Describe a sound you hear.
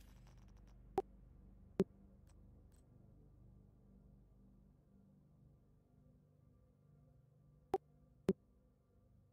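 Short soft clicks sound as menu options are selected.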